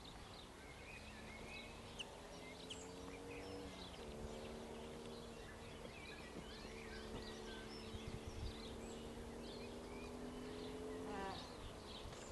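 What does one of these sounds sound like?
A steam train whistle blows long and steady.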